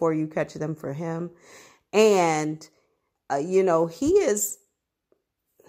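A woman speaks slowly and calmly in a sing-song voice close to a microphone.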